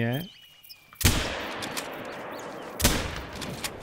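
A rifle fires with a loud crack that echoes away.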